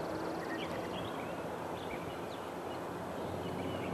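A golf putter taps a ball softly.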